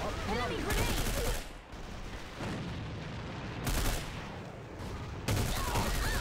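A rifle fires sharp gunshots.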